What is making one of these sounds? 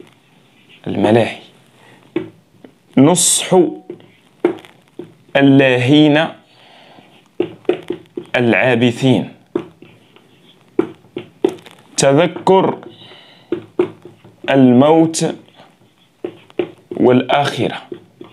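A young man speaks calmly and clearly, close by, pausing between phrases.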